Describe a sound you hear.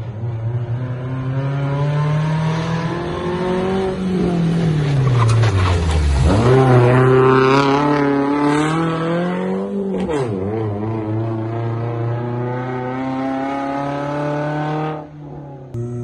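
A rally car engine revs hard as it races up and past close by.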